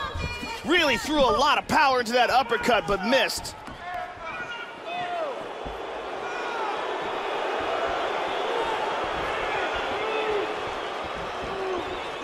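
A crowd murmurs and cheers in a large arena.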